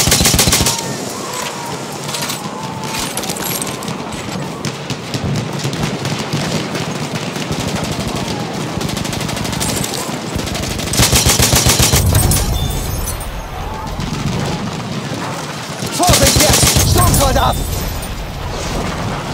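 Distant battle noise rumbles with explosions and gunfire.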